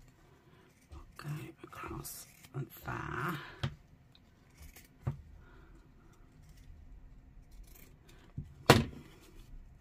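Scissors snip through fabric and paper.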